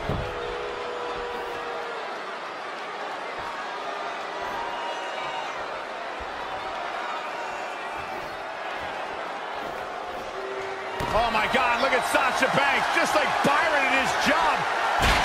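A large arena crowd cheers.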